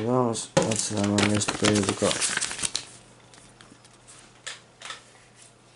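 Paper pages of a booklet rustle.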